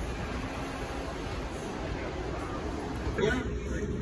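Passengers chatter in the background.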